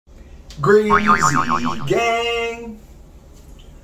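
A young man sings loudly and playfully close by.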